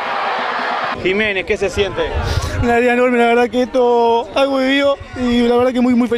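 A young man speaks with excitement close to a microphone.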